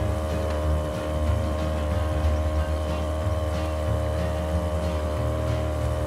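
A motorboat engine drones steadily at high speed.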